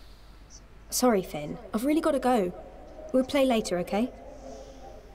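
A young woman speaks apologetically.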